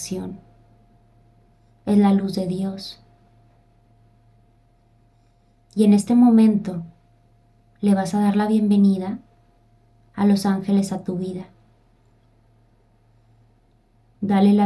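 A young woman speaks softly and slowly into a microphone close by, with long pauses.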